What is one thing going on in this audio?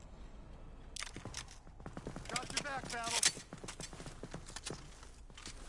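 A rifle rattles as it is reloaded in a video game.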